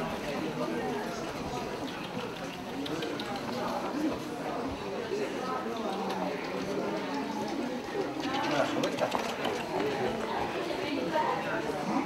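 A crowd of men and women chatters in a large echoing hall.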